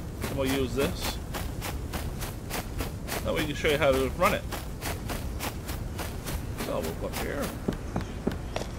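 Footsteps swish steadily through grass.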